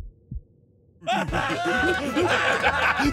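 A young man laughs loudly and gleefully.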